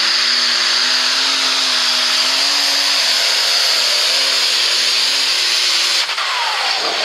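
A tractor engine roars loudly at full power.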